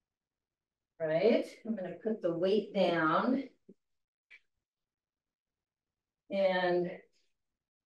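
An elderly woman speaks calmly, heard through a microphone on an online call.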